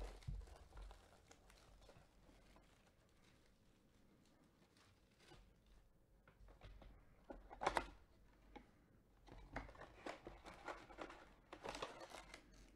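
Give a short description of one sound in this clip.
Gloved hands handle and turn a cardboard box, rustling and tapping.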